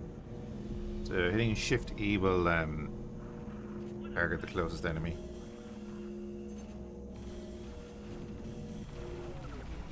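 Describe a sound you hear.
A spaceship engine hums steadily.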